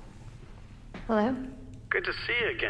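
A young woman softly asks a question.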